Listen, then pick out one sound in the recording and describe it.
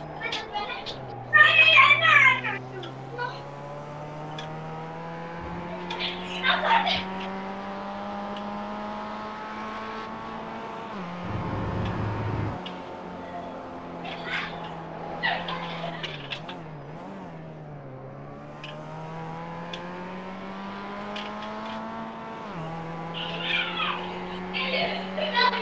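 A race car engine hums steadily, rising and falling in pitch as the car speeds up and slows down.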